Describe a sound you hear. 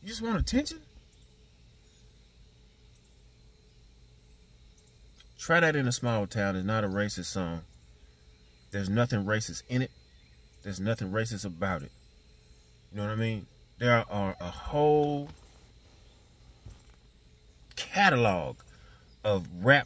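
A middle-aged man speaks calmly and haltingly, close to the microphone.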